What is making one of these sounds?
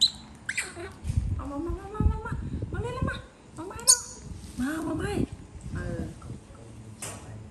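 A middle-aged woman talks with animation nearby.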